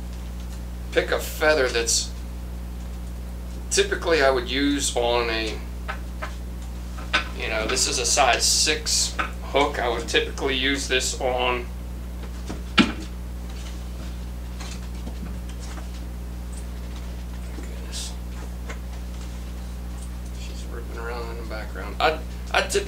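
A man speaks calmly and close to a microphone, explaining.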